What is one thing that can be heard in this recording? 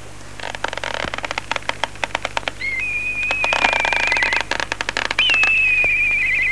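Horses' hooves clop on a dirt path.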